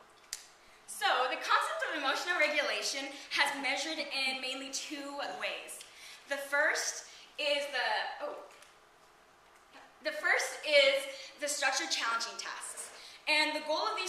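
A young woman speaks with animation into a microphone in a large room.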